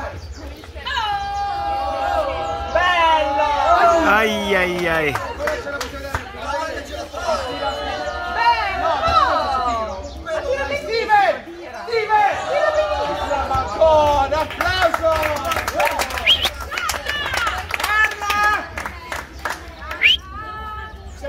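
A crowd of people sings and cheers together.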